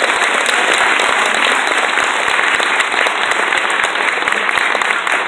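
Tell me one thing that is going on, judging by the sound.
A big band plays loudly in a large echoing hall, with saxophones and brass.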